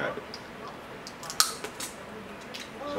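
Crab shells crack and snap.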